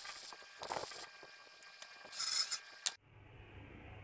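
An electric welding arc crackles and sizzles.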